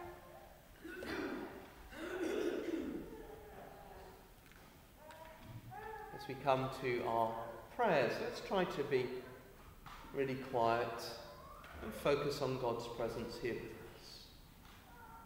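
A man reads aloud calmly into a microphone in a large echoing hall.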